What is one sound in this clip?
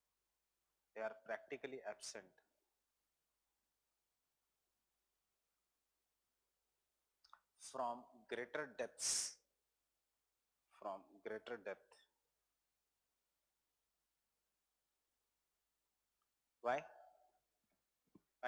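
A man speaks calmly into a microphone in short bursts with pauses.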